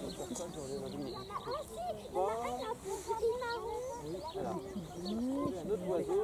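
Several children talk and chatter excitedly close by, outdoors.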